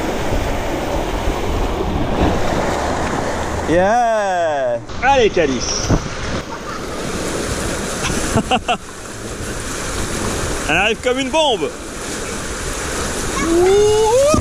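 Water rushes down a slide under a rider.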